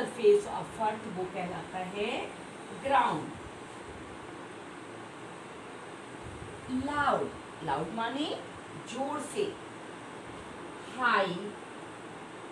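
A woman speaks calmly and clearly nearby, in short phrases with pauses.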